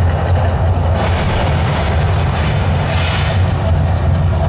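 A burst of flame erupts with a loud whoosh.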